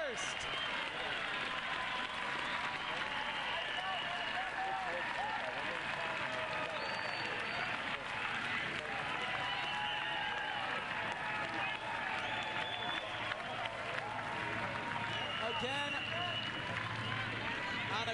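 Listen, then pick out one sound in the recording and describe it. A large crowd cheers loudly outdoors.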